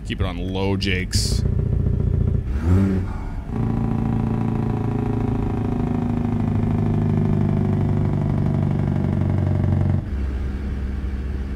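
A truck's diesel engine drones steadily, close by.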